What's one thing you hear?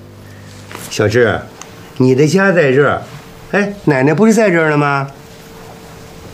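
An elderly man speaks gently, close by.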